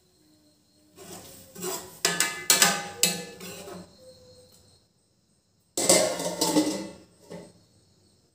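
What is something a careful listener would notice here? A metal ladle clanks against a metal pan.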